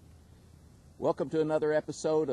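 A man speaks calmly and close by, outdoors.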